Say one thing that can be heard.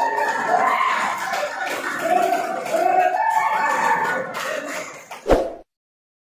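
A man chants loudly, leading a group.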